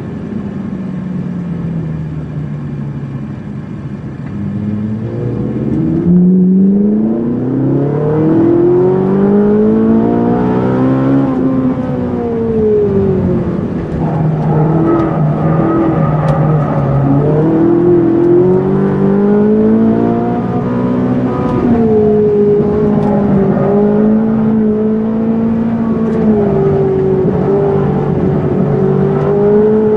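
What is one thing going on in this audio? A sports car engine roars and revs up and down as the car speeds along.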